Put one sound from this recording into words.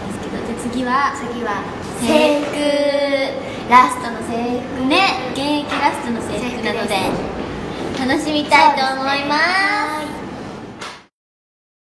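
Two young women talk cheerfully to each other, close by.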